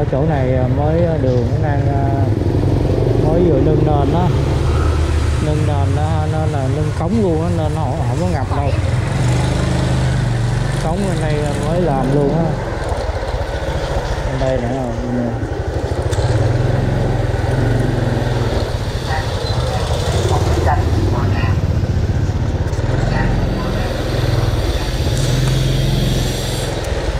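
A motorbike engine hums steadily at close range.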